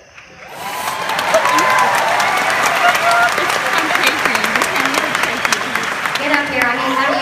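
A large crowd cheers and applauds in a big hall.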